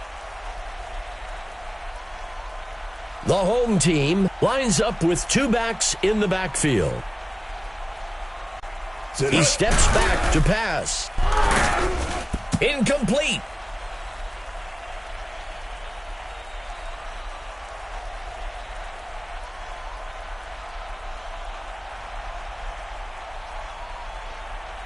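A stadium crowd murmurs steadily in the distance.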